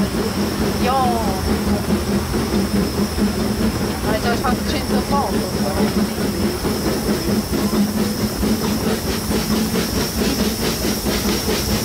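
A steam locomotive chuffs rhythmically.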